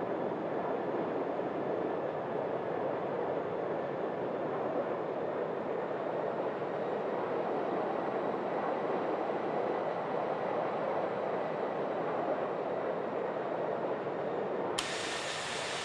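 A jet airliner's engines roar steadily, muffled as if heard from inside the cabin.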